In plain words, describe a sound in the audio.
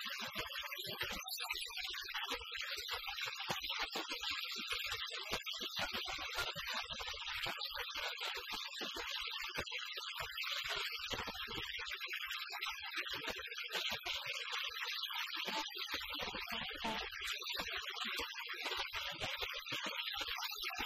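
A loud band plays distorted music live in a small room.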